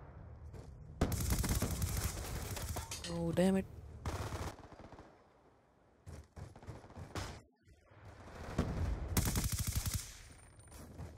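Automatic gunfire rattles in short, rapid bursts.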